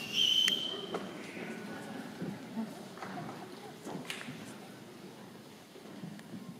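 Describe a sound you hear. A band plays softly in a large hall.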